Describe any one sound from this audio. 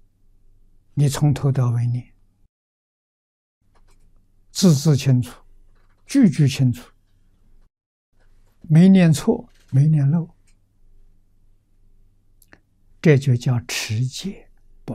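An elderly man speaks calmly and slowly into a microphone, with pauses between phrases.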